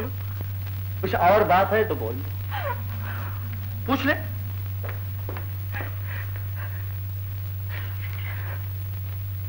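A young woman wails and cries out tearfully, close by.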